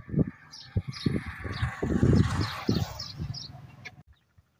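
A caged bird calls with short, repeated chirps.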